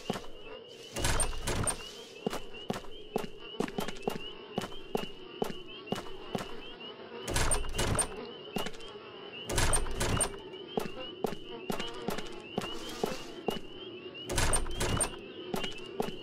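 A locked door rattles as its handle is tried.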